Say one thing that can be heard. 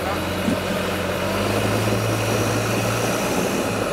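Tyres scrape and crunch over rock.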